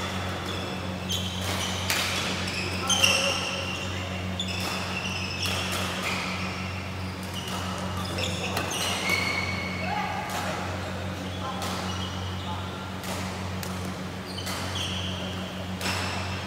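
Badminton rackets strike a shuttlecock in quick rallies, echoing in a large hall.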